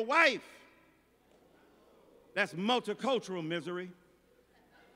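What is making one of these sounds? A middle-aged man preaches with feeling through a microphone in a large echoing hall.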